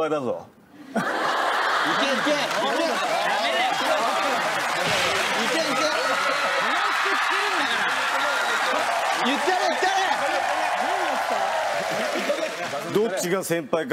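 A studio audience cheers and laughs loudly.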